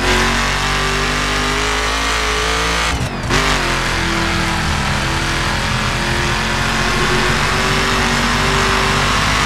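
A powerful car engine roars loudly at high speed.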